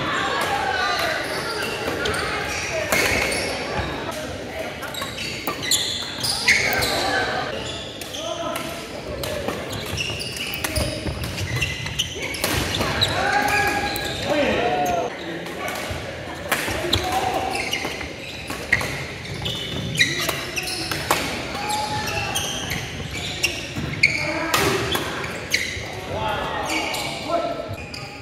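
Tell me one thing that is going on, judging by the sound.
Men and women chatter and call out nearby and across the hall.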